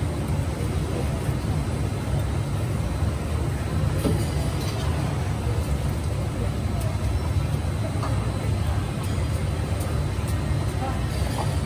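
A metal fryer basket clinks and rattles.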